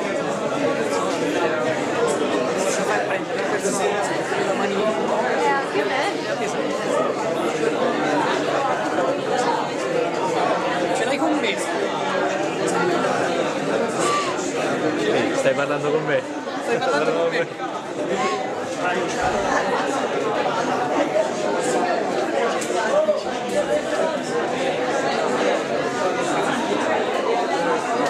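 Many voices murmur and chatter in a room.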